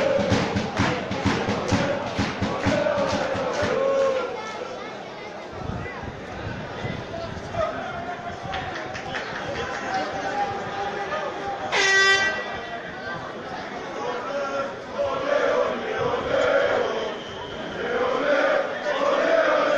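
Men shout to each other across an open, echoing pitch.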